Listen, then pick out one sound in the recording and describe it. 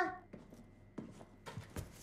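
Footsteps walk away on a hard floor.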